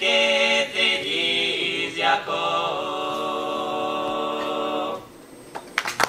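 A young woman sings into a microphone, holding a long final note.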